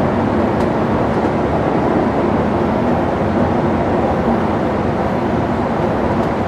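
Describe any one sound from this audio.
A vehicle's engine drones steadily.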